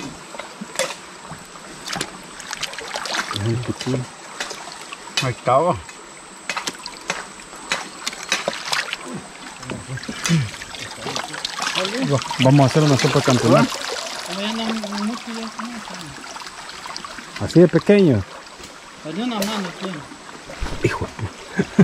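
A shallow stream trickles steadily outdoors.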